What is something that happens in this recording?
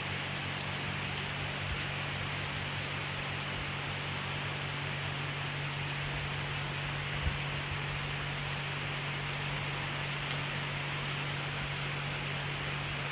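Rain splashes on wet pavement.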